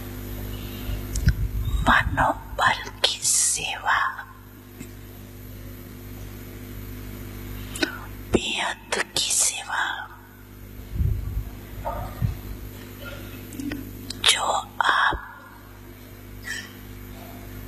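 An elderly man speaks slowly into a microphone, heard through loudspeakers, with pauses between phrases.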